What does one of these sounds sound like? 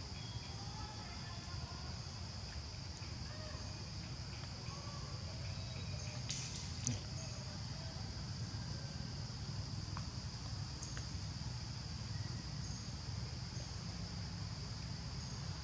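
A young monkey chews and nibbles food.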